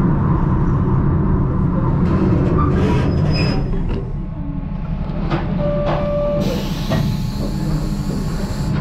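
A small diesel locomotive rumbles steadily as the train rolls slowly along.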